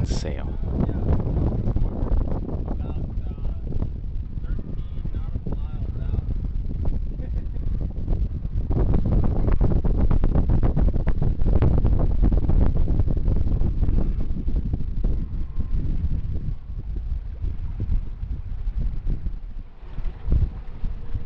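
Water rushes and splashes along the hull of a moving sailboat.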